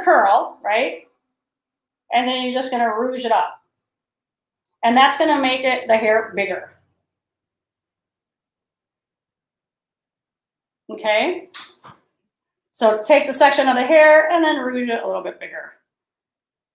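A woman talks calmly and close by, explaining in short bursts with pauses.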